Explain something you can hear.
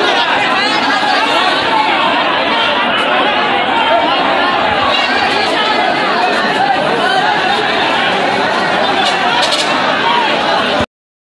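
A crowd of men talk and shout over one another close by.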